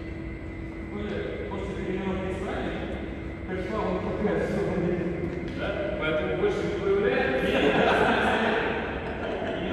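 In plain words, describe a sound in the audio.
A young man talks calmly nearby in an echoing hall.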